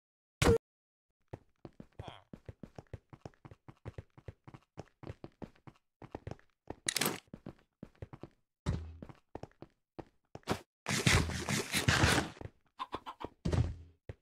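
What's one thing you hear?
Quick footsteps tap on hard stone.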